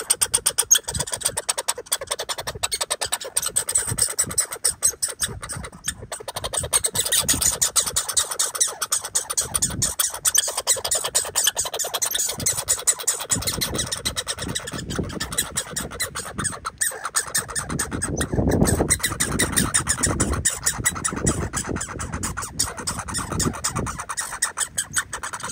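A squirrel crunches and nibbles seeds close by.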